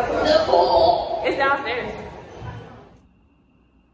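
A young woman talks with animation close to a phone microphone.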